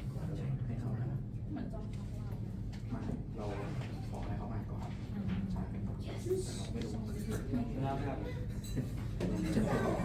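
A violin plays a melody.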